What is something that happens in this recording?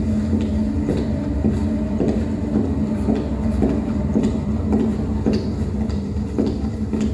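An electronic synthesizer drones steadily.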